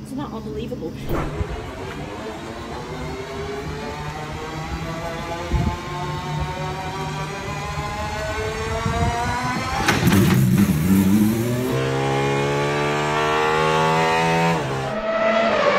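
A sports car engine idles and revs.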